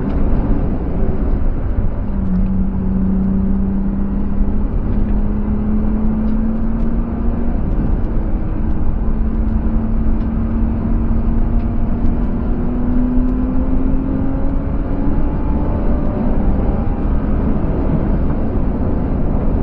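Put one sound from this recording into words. A car engine roars steadily and rises in pitch as it speeds up.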